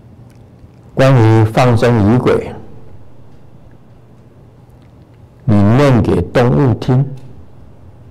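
An elderly man chants in a deep, drawn-out voice through a microphone, in two short phrases with pauses between them.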